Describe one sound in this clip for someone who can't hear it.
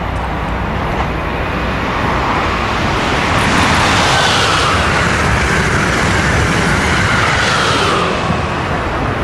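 A high-speed train rushes past close by with a loud roar that builds and then fades.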